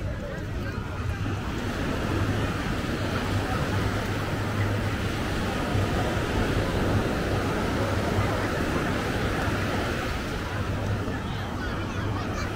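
A crowd of people chatters at a distance outdoors.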